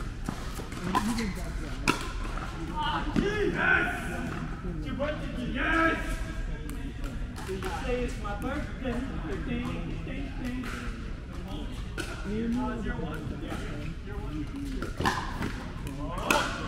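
Men talk casually at a distance in an echoing hall.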